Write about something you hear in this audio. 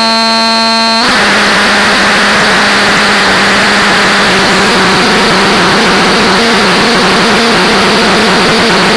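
Harsh electronic noise roars with a low wavering tone.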